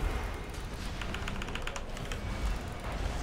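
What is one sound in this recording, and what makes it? Rapid metallic clicks ring out in a video game.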